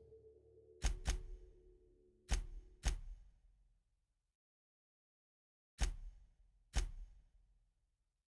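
Short sharp interface clicks sound as menu pages switch.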